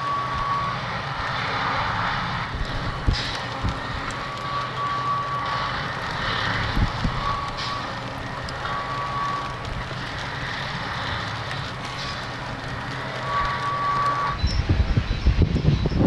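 A heavy rail machine's engine rumbles steadily as it rolls along the track.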